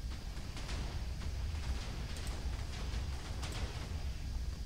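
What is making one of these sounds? Soft game menu clicks sound as items are selected.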